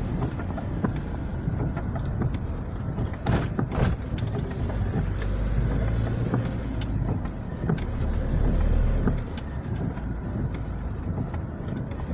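Raindrops patter on a windscreen.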